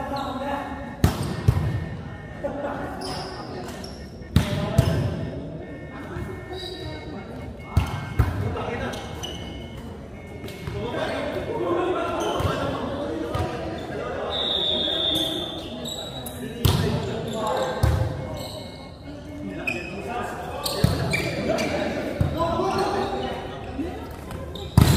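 A volleyball is hit with sharp slaps that echo in a large hall.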